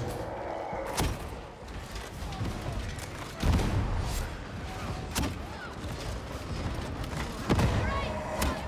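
Guns fire loud, sharp shots in an echoing hall.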